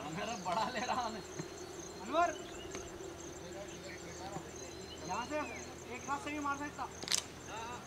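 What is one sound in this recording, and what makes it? Men call out to each other across an open field, heard from a distance.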